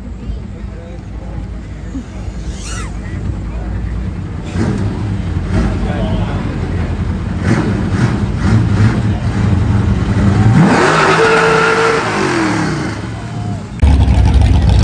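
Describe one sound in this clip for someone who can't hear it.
A pickup truck's engine revs and pulls away.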